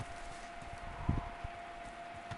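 A ball is kicked with a dull thump.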